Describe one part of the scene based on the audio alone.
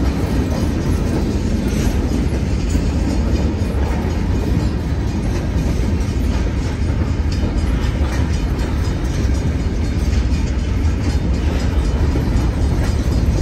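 Steel wheels clack over rail joints.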